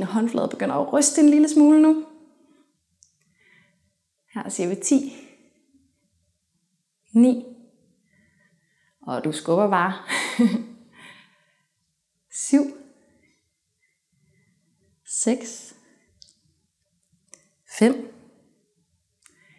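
A young woman speaks calmly and clearly into a clip-on microphone, with pauses.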